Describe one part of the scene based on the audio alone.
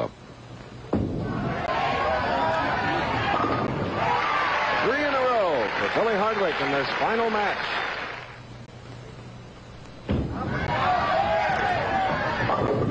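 A crowd cheers and applauds loudly in a large echoing hall.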